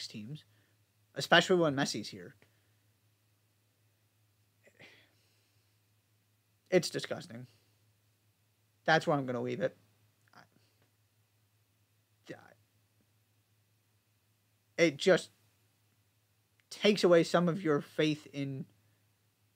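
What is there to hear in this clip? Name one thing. A young man talks calmly into a microphone, close by, with pauses between phrases.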